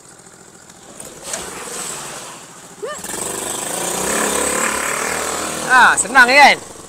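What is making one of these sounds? A small quad bike engine revs as it climbs through mud.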